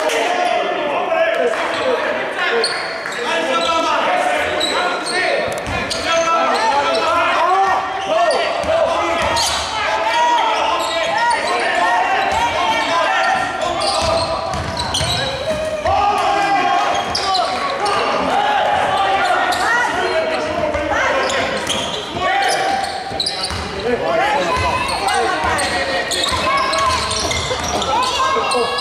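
Voices echo through a large indoor hall.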